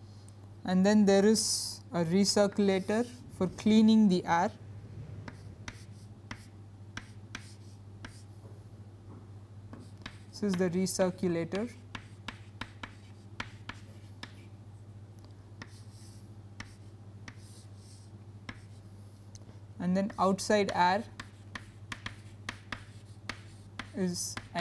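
Chalk taps and scrapes on a chalkboard.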